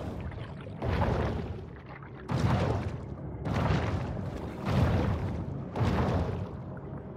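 Muffled underwater whooshes surge in a steady rhythm as a large shark swims.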